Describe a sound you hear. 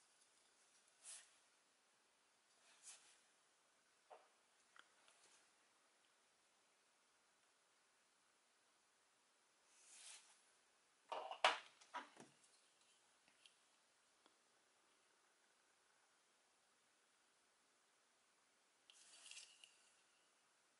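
Small plastic pieces click and rattle as hands handle them.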